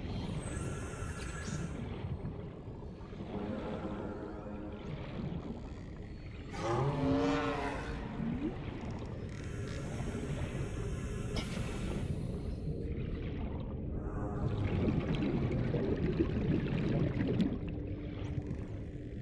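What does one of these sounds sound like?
Water swirls and bubbles steadily underwater.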